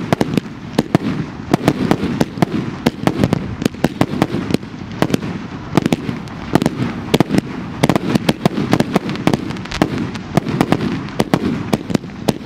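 Fireworks burst with rapid, sharp bangs and crackles close by.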